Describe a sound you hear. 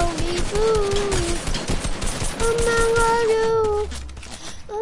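Rapid gunshots crackle.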